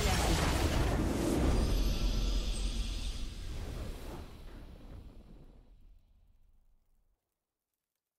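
A triumphant game fanfare swells and fades out.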